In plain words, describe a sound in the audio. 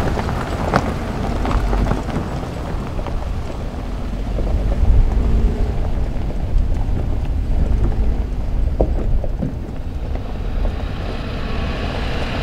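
An engine rumbles as a vehicle drives slowly.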